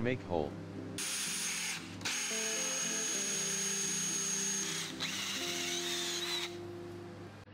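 A power drill whirs as a hole saw cuts into a board.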